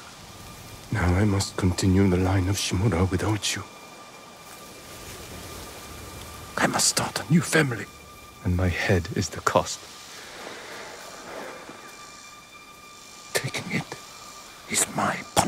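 A middle-aged man speaks calmly and gravely, close by.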